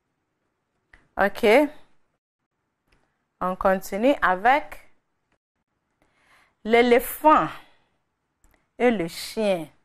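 A young woman speaks clearly into a microphone, in short phrases with pauses.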